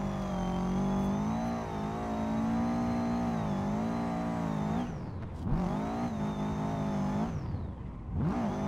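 A car engine roars at high revs, dropping and climbing again as the gears change.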